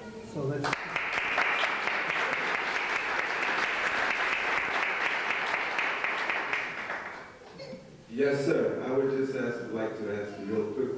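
An elderly man speaks calmly and with good humour into a microphone.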